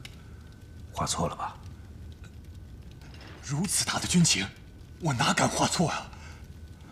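A man answers with a low, uneasy voice.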